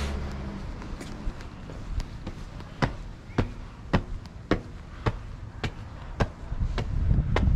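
Footsteps tap steadily on stone steps.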